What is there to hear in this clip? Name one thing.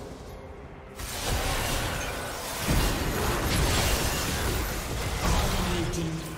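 Magic spells whoosh and crackle in a fast fantasy battle.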